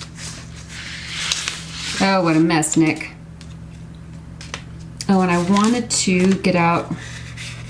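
Paper rustles and slides under hands.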